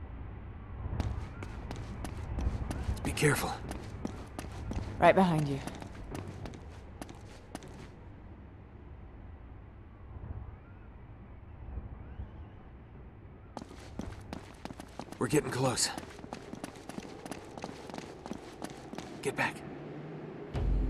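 Footsteps run up stone stairs.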